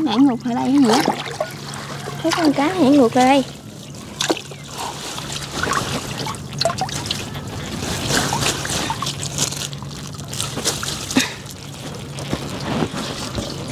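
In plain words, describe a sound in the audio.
Water splashes and drips as a wet net is lifted out of shallow water.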